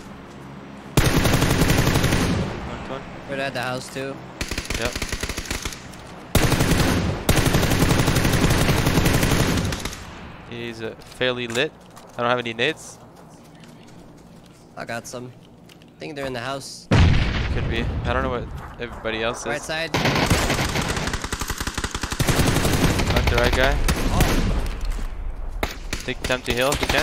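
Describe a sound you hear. An assault rifle fires in rapid automatic bursts.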